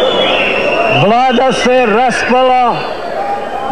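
A middle-aged man speaks forcefully through a megaphone.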